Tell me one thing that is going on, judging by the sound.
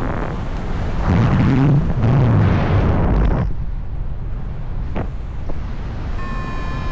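Wind rushes loudly past a glider in flight.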